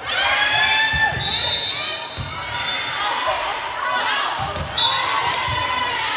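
A volleyball is struck with sharp thuds.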